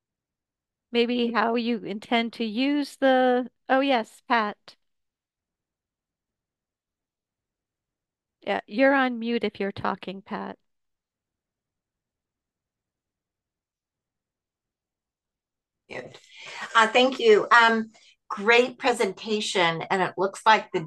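A woman speaks calmly through an online call, in short bursts with pauses.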